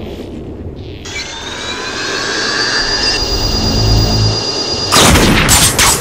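A sniper rifle whines as it charges up.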